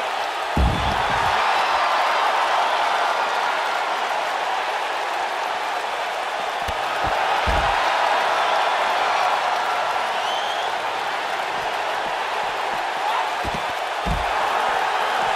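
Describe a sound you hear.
Bodies slam onto a hard floor with heavy thuds.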